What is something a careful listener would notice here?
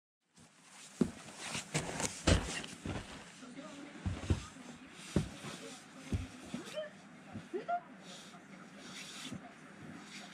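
Boots crunch and stomp in deep snow close by.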